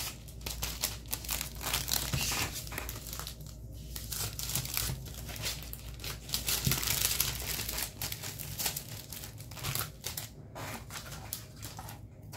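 Paper and card rustle as they are picked up and moved around.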